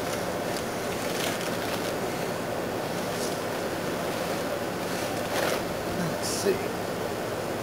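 A plastic tarp rustles and crinkles as it is handled.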